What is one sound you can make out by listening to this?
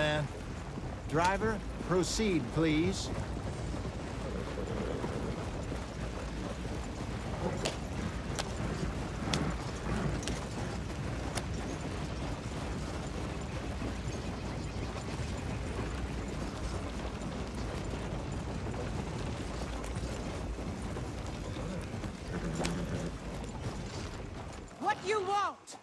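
A horse-drawn wagon rolls and rattles along a dirt path.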